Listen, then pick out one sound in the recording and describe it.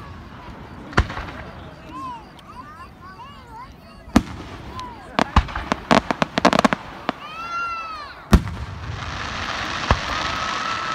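Fireworks boom loudly outdoors.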